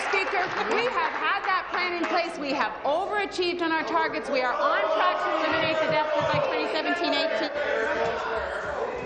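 A woman speaks loudly and with animation into a microphone in a large echoing chamber.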